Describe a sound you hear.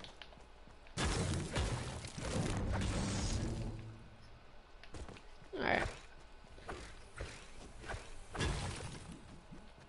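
A pickaxe strikes a wall with repeated heavy thuds.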